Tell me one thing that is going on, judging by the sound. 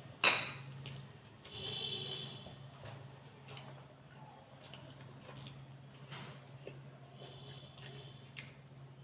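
Fingers squish and mix rice on a plate.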